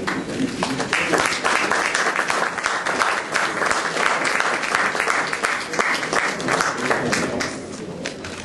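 A small group of people applauds in a room.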